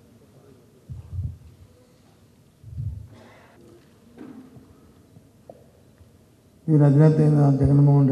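A middle-aged man speaks through a microphone and loudspeakers, echoing in a large hall.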